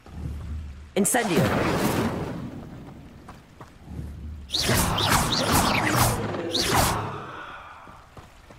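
A magical shimmering whoosh swells and fades, twice.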